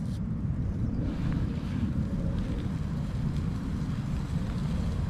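Meat sizzles quietly in a hot pan.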